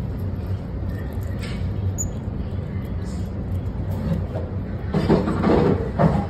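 A small monkey smacks its lips and chews.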